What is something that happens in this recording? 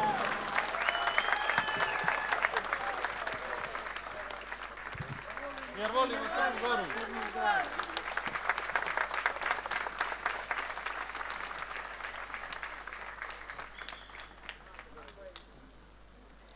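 A large crowd applauds and cheers outdoors.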